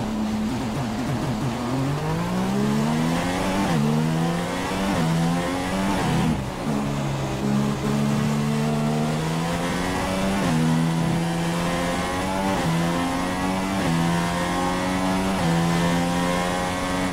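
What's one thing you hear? A racing car engine screams, rising in pitch and dropping with each gear change.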